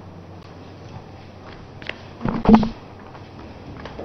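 Paper rustles and shuffles close by.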